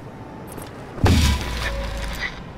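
Metal guns clack as they are drawn.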